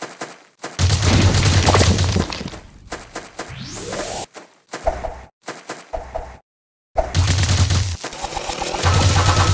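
Rapid video game blaster shots fire in bursts.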